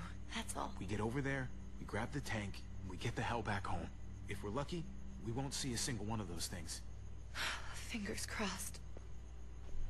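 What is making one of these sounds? A young woman talks quietly, close by.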